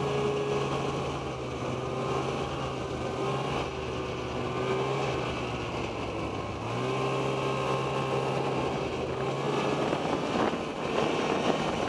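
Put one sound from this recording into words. A snowmobile engine drones steadily up close, rising in pitch as it speeds up.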